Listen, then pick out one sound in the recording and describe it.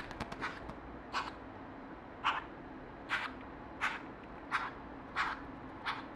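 An owl's wings flutter in the cage.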